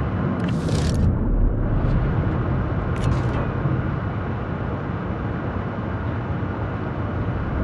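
A submarine hums with a deep, steady underwater rumble.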